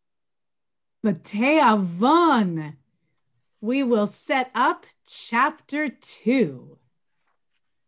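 A middle-aged woman speaks cheerfully over an online call.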